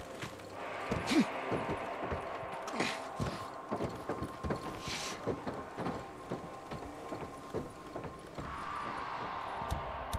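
Footsteps thud on a metal roof.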